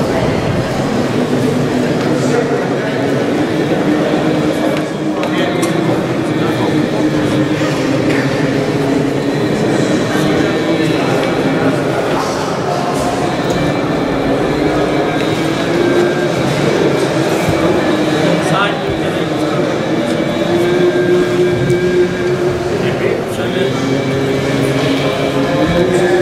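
A man chants in a slow, sustained voice that echoes through a large stone hall.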